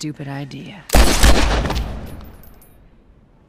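A gunshot bangs loudly and echoes.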